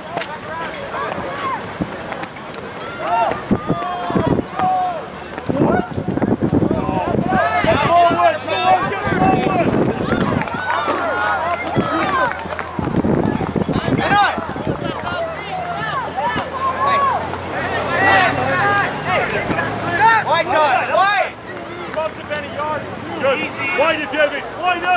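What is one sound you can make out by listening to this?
Players shout and call to each other across an open field.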